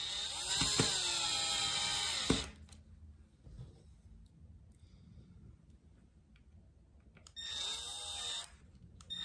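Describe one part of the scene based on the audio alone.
A cordless drill whirs in short bursts, driving screws.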